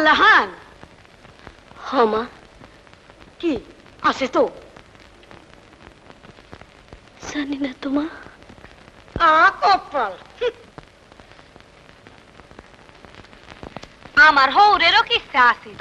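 A woman speaks in short, lilting phrases, with pauses between them.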